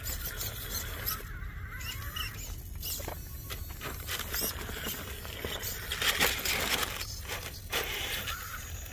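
A small electric motor whines as a toy truck crawls over rock.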